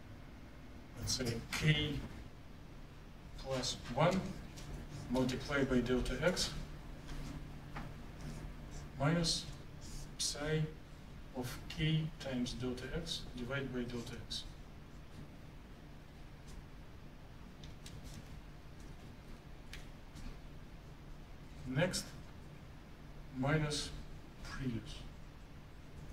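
A man lectures calmly in an echoing room.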